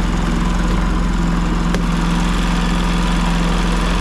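A plastic cover clicks as it is pulled off.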